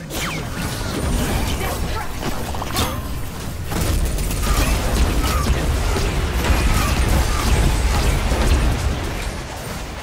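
Deep rumbling explosions boom again and again.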